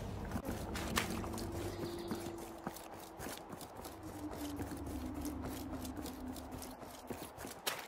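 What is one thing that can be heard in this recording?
Footsteps crunch quickly on a dirt path.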